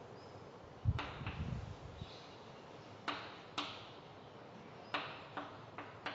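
Chalk taps and scrapes against a board.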